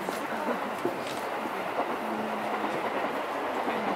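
A train rolls by.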